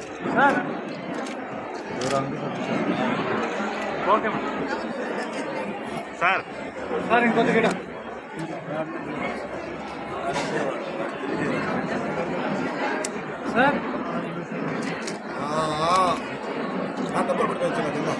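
A crowd of men and women talks and murmurs nearby.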